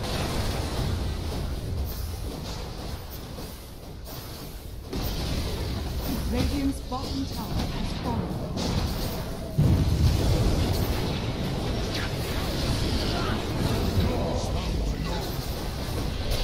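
Spell effects and combat sounds of a video game battle clash and burst.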